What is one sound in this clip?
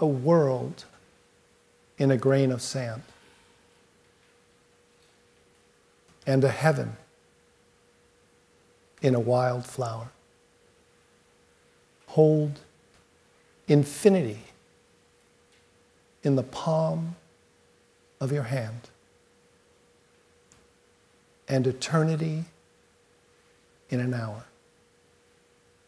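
A middle-aged man speaks slowly and calmly through a microphone, with long pauses.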